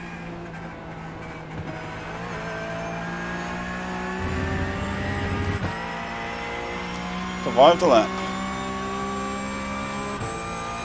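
A racing car engine hums steadily and slowly rises in pitch as the car speeds up.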